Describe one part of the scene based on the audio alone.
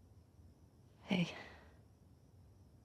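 A young woman answers briefly, close by.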